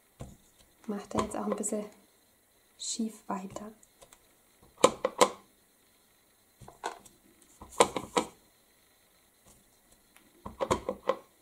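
A rubber stamp taps against an ink pad.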